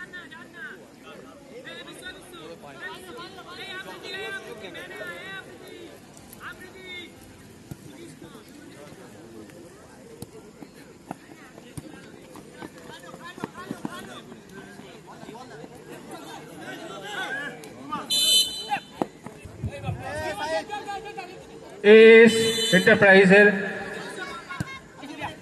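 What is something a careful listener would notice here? A player kicks a football with a thud.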